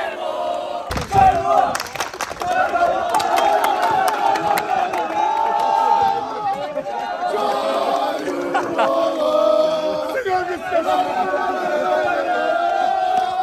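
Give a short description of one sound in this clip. A group of men sings and chants loudly outdoors.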